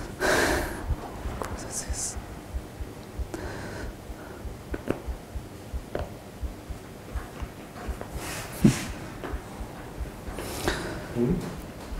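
Paper rustles in a man's hands.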